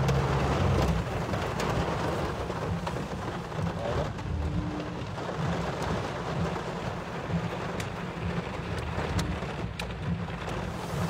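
Heavy rain pours down and drums on a car's roof and windscreen.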